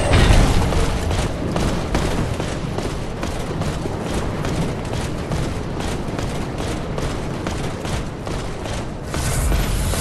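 Armoured footsteps run on stone.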